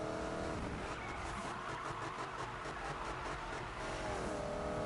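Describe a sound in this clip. Car tyres screech during a drift.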